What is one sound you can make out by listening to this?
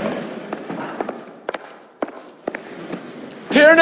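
Footsteps clack on a hard floor.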